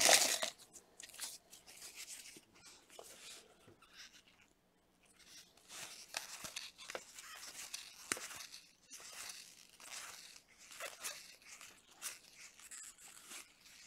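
Cards slide and flick softly against one another.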